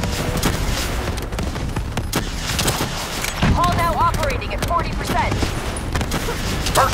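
Gunfire cracks in quick bursts.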